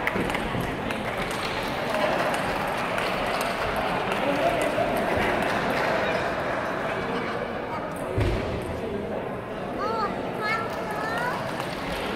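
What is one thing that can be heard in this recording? Sneakers squeak and shuffle on a wooden floor.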